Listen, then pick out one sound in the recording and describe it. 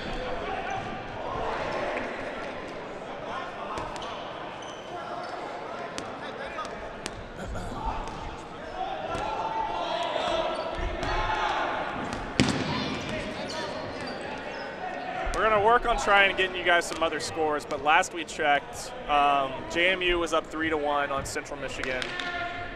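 A crowd of young people chatters and shouts in a large echoing gym.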